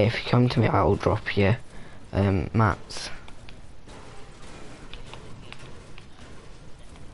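A pickaxe strikes hard surfaces with sharp clinks.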